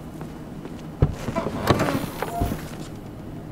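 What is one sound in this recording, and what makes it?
A car trunk lid clunks open.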